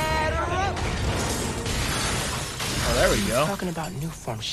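An explosion bursts with a loud crackling blast.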